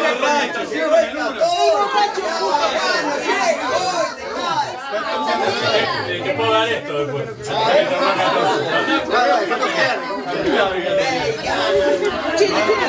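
A crowd of people chatter and talk over one another in a room with some echo.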